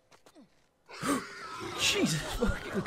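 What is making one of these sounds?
A body thuds heavily onto a hard floor.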